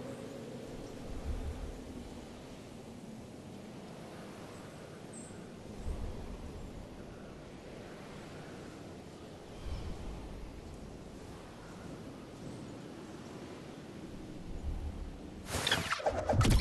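Wind rushes steadily past a falling skydiver.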